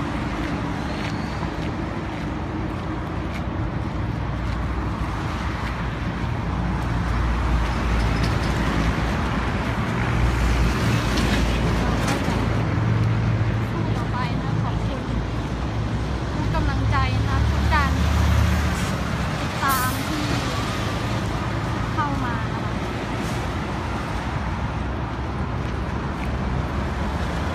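Traffic roars steadily past on a nearby road.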